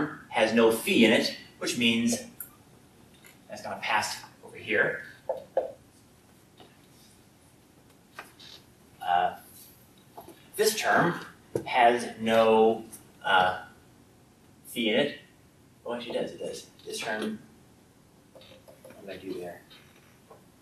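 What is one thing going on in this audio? A man speaks calmly in a quiet room with some echo.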